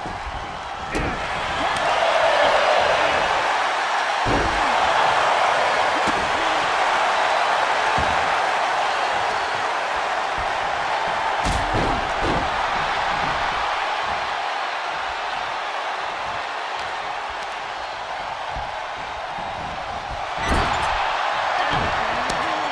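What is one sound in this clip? Heavy thuds land as bodies hit the mat.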